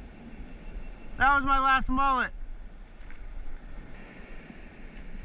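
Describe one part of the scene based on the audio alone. Small waves lap gently against a kayak.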